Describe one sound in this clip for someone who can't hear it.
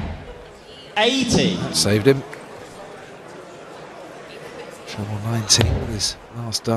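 A man calls out loudly through a microphone in a large hall.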